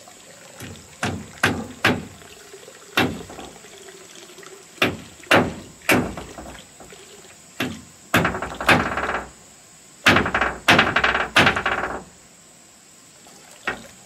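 A hammer knocks nails into wooden boards in sharp, uneven blows.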